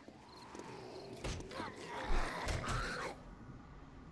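A knife slashes and stabs with wet thuds.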